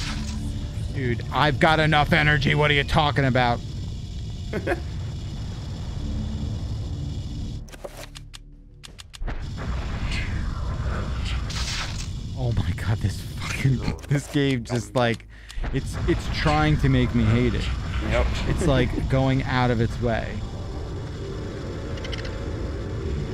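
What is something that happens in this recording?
A man talks casually and with animation into a close microphone.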